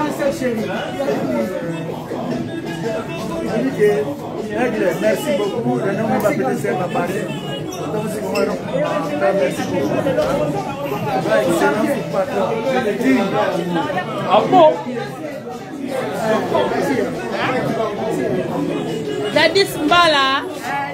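Several people chatter and laugh nearby.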